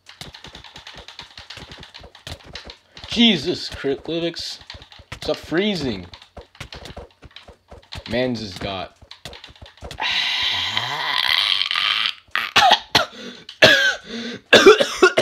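Buttons on a game controller click rapidly.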